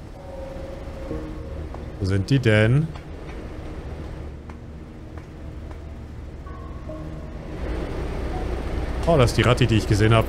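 Footsteps clang on a metal floor.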